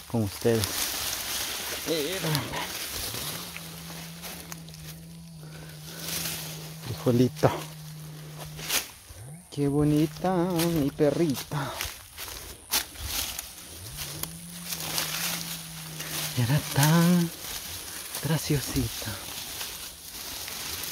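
Dry leaves and stems rustle close by as a hand pulls at plants.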